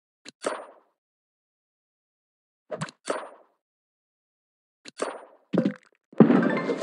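A short swishing snip sounds several times.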